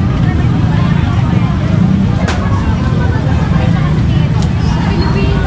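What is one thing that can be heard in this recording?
A busy outdoor crowd chatters in the background.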